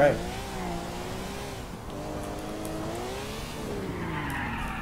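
A car engine hums and revs, its pitch rising and falling.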